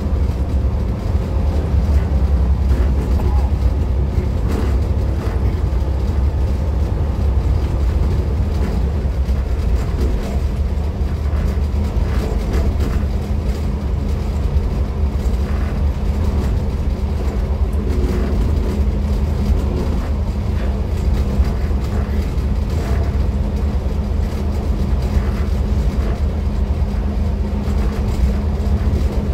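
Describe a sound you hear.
A train engine rumbles steadily as the train rolls along.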